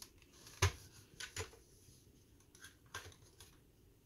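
Plastic toy parts click and knock as they are handled.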